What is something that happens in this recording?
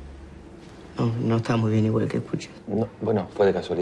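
A young man speaks quietly up close.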